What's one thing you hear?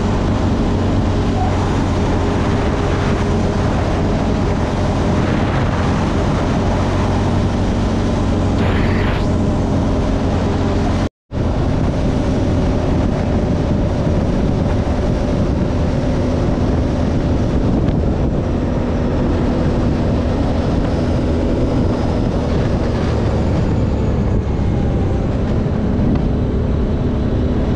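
A motorcycle engine drones steadily.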